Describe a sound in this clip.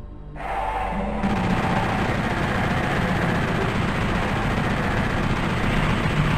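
A rapid-fire gun fires in a fast, steady stream of shots.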